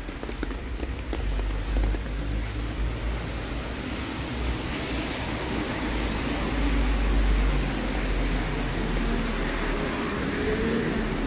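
Rain patters steadily on a wet street.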